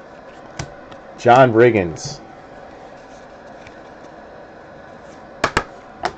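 Trading cards slide and tap against each other in hands.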